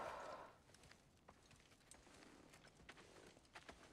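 Footsteps crunch softly on the ground.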